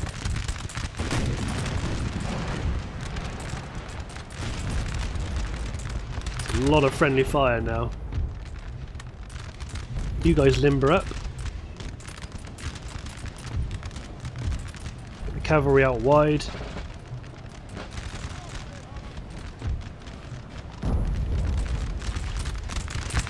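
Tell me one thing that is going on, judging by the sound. Cannons boom with a low rumble.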